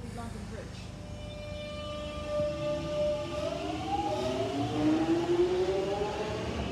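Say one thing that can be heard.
An electric train motor whines, rising in pitch as it speeds up.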